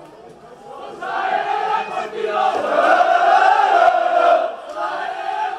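A crowd of fans sings and chants loudly.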